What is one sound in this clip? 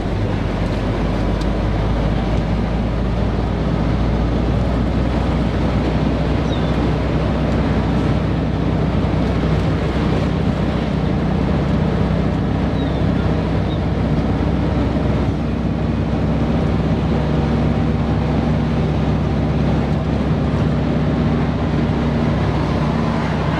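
Tyres rumble on a road.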